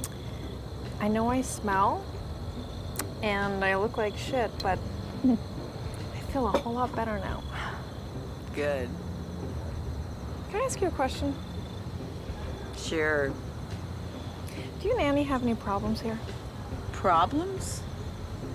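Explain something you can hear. A young woman answers in a soft, relaxed voice.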